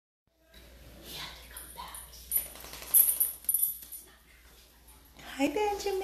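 A small dog's claws click and scrape on a hard floor.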